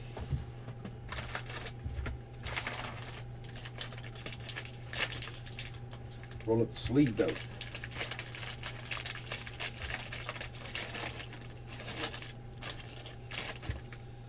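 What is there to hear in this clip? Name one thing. Foil card packs crinkle as they are picked up and handled.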